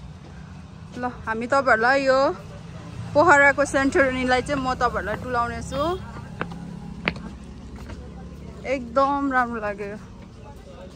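Young women chat with animation nearby.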